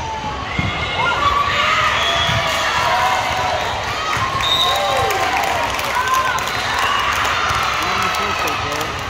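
Spectators cheer and shout.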